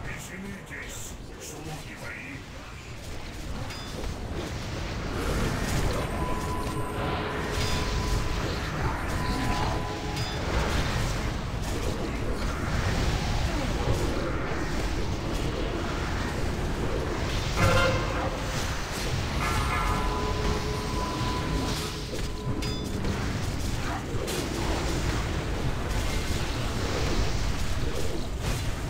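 Magic blasts and combat sounds crackle and boom in a fierce battle.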